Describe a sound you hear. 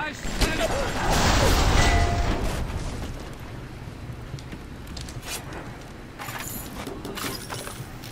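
Flames roar and crackle nearby.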